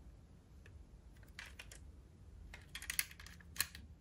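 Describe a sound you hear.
A toy car door clicks open and shut.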